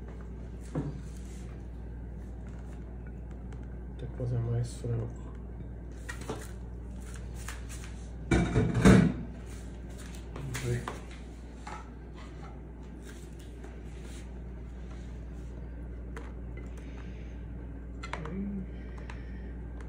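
A spatula scrapes food off a plate.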